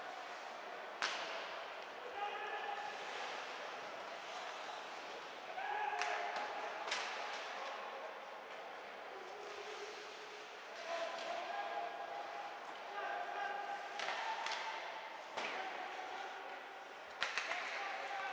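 A hockey stick smacks a puck with a sharp crack.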